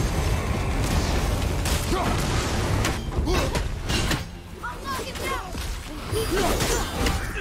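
Weapons clash and strike with heavy thuds in a fight.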